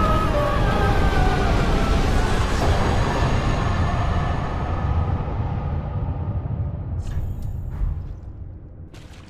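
A deep, loud rumble with a roar fades away slowly.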